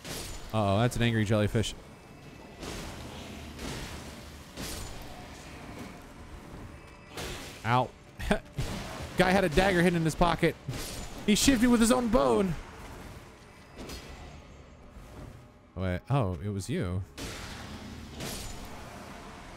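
Sword blows swish and strike with heavy impacts.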